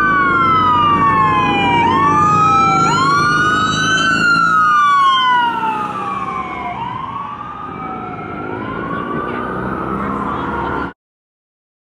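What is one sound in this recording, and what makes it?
An ambulance siren wails as the ambulance passes and fades into the distance.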